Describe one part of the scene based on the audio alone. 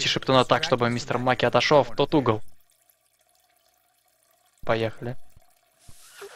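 A man speaks with animation, heard through a microphone.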